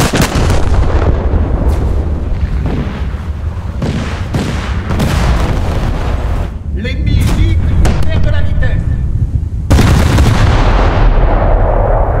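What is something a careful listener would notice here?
Heavy naval guns boom repeatedly with a deep rumble.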